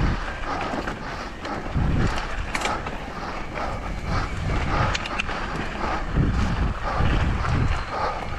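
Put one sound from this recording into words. Bicycle tyres crunch and rattle over a dry dirt trail.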